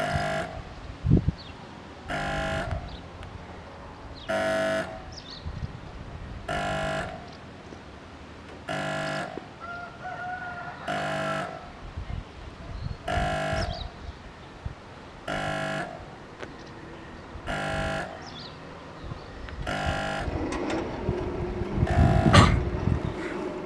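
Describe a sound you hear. A level crossing bell rings in steady, evenly spaced bursts.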